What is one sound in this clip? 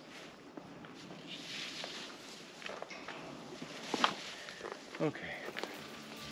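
Leaves rustle as a man brushes through plants.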